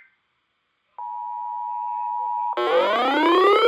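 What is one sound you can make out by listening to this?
A steady warning tone sounds from a radio speaker.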